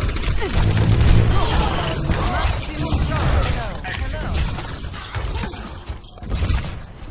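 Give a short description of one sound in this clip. A heavy gun fires in rapid bursts.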